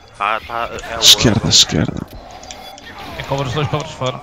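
A laser gun fires in sharp bursts.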